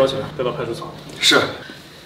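A man speaks sharply.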